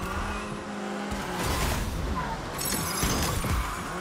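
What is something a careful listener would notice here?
Metal crunches as cars crash into each other.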